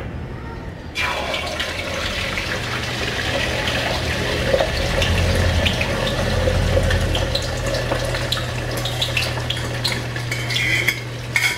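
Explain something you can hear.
Egg sizzles and crackles in hot oil.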